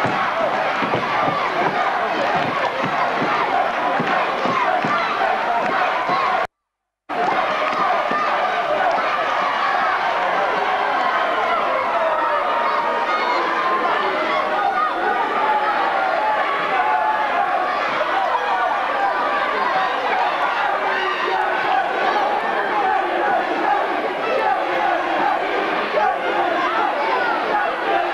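A large crowd cheers and chants loudly in an echoing hall.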